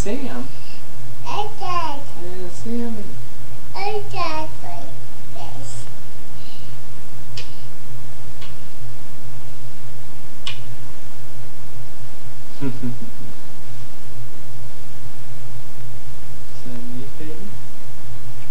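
A man talks softly and playfully up close.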